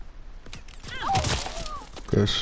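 A heavy blade strikes with a thud.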